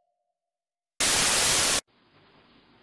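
Loud static hisses in a short burst.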